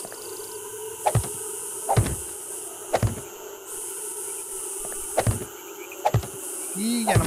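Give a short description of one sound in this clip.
Heavy blocks thump into place one after another.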